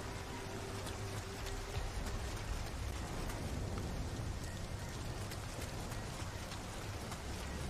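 Footsteps tread on stone.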